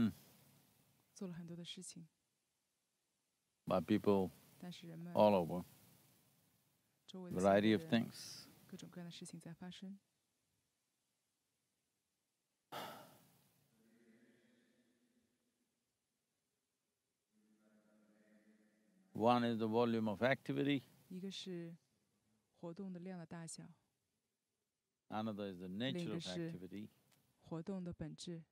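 An elderly man speaks calmly and slowly, with long pauses, close to a microphone.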